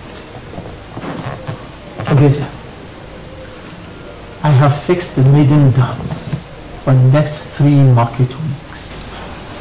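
An elderly man speaks slowly and with feeling, close by.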